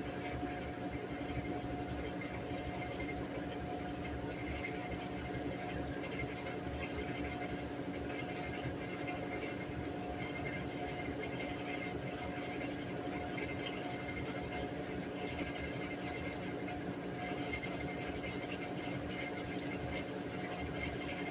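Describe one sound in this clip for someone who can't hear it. A top-load washing machine hums and whirs as its drum spins.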